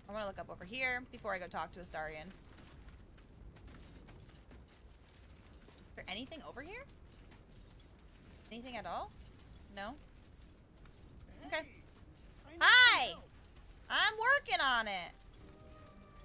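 A young woman talks animatedly into a close microphone, in short bursts with pauses.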